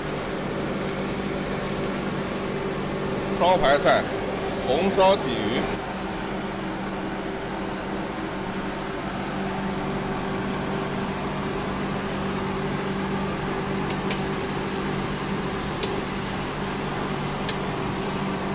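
A metal ladle clinks against a wok.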